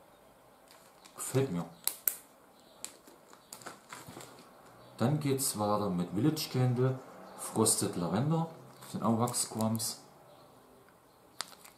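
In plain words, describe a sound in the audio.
A plastic bag crinkles in hands.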